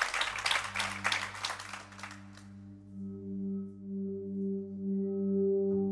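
A low electronic tone hums and swells steadily.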